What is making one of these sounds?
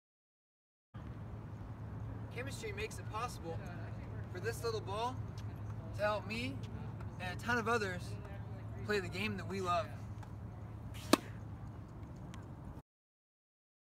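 A young man talks calmly, close by, outdoors.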